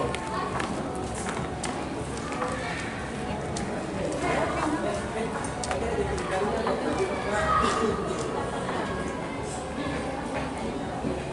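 A crowd of men and women chatter nearby in a busy, echoing hall.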